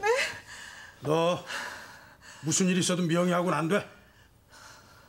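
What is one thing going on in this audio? A middle-aged man speaks in a low, stern voice.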